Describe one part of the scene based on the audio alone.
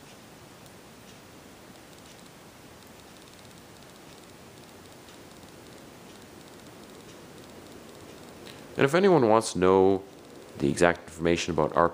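A ceiling fan whirs softly and steadily.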